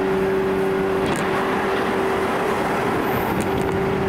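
A passing train rushes by in a loud burst of wind.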